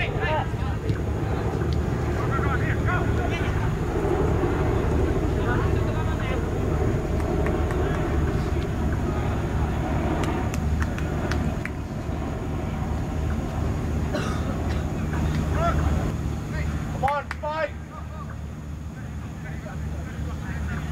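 Wind blows steadily over the microphone outdoors.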